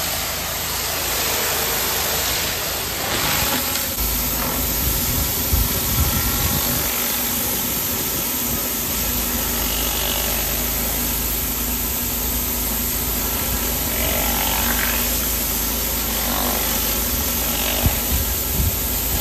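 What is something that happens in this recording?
A surface cleaner hisses as it sprays water across paving.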